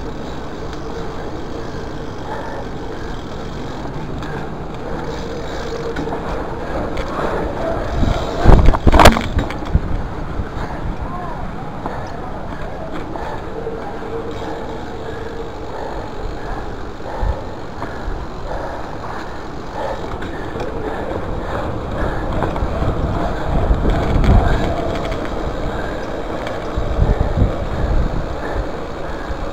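Bicycle tyres roll and rattle over paving bricks.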